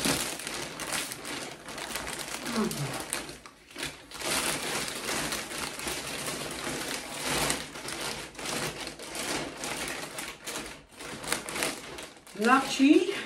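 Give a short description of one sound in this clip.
A plastic bag crinkles and rustles loudly.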